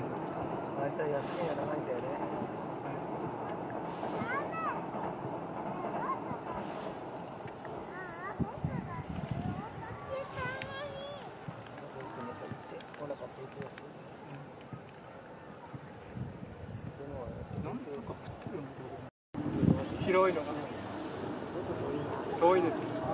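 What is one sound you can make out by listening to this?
Birds chirp and whistle nearby outdoors.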